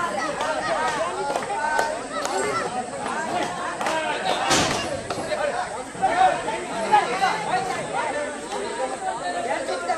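Many men talk and call out at once outdoors.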